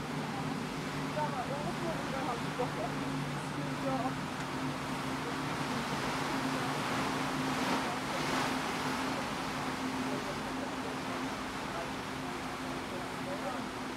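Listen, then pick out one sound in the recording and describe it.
Water rushes and splashes against a ship's bow.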